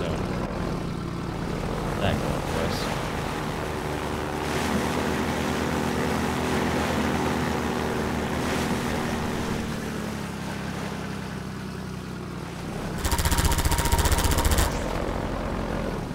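An engine drones steadily throughout.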